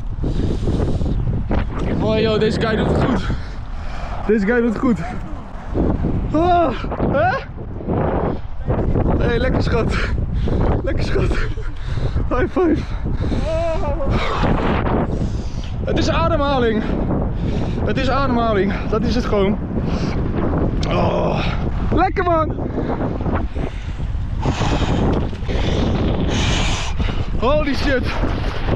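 Wind blows hard against the microphone.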